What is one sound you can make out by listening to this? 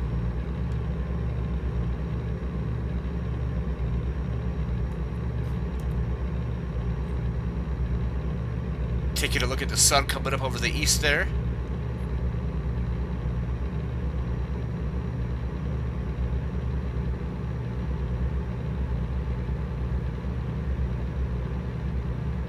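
A truck engine drones steadily.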